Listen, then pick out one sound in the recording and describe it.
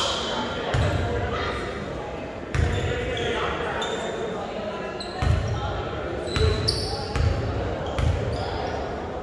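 A basketball bounces on a hardwood court in a large echoing gym.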